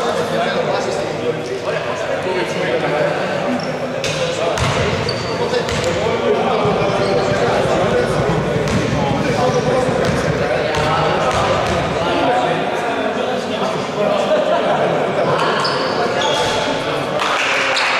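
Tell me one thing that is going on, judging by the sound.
Men shout and call out across an echoing gym.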